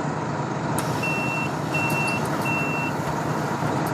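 A bus door chime beeps three times.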